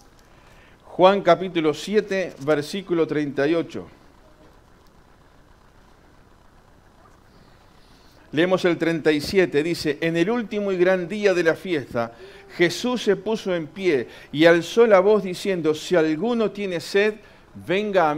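A middle-aged man speaks with animation into a microphone, preaching and reading aloud.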